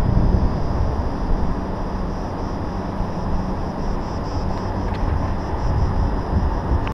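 Wind gusts outdoors, rumbling low and unevenly.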